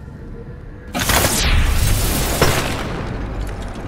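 A wall smashes apart with a loud crash.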